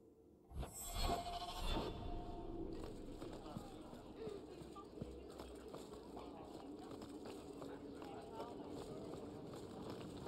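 Footsteps patter quickly across a stone floor and up stone stairs.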